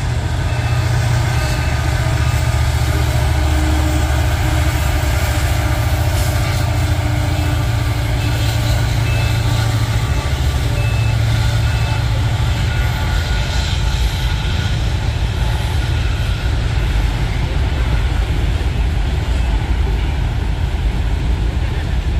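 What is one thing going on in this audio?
A freight train rumbles steadily past, its wheels clattering on the rails.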